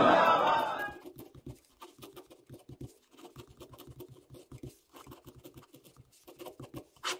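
A pen scratches and taps on paper up close.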